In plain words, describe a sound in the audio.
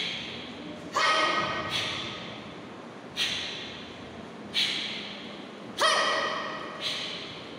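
A young woman gives short loud shouts.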